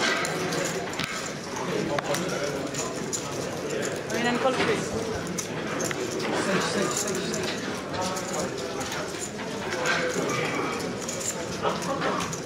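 A crowd of men and women chatters loudly nearby, in a busy room.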